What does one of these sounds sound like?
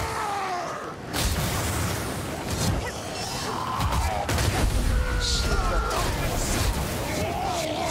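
Electric magic crackles and zaps.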